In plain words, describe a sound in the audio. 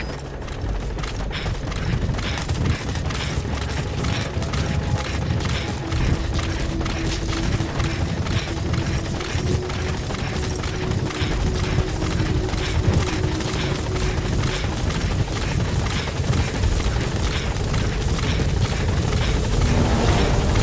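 Footsteps run quickly over dirt.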